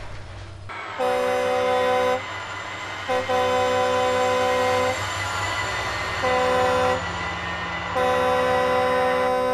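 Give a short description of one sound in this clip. A diesel locomotive engine rumbles as the train passes.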